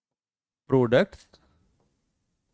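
A man speaks briefly and with emphasis into a close microphone.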